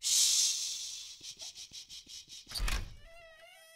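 Knuckles knock on a door several times.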